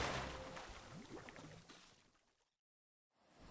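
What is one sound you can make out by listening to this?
Water splashes and churns beside a moving boat.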